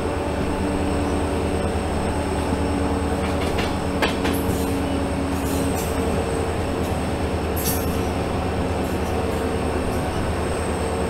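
A diesel locomotive engine rumbles steadily up close.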